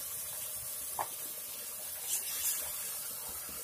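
A spoon scrapes and stirs in a clay pot.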